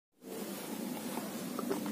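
A young woman gulps water from a glass.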